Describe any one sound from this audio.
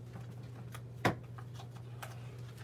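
A page of a book rustles as it turns.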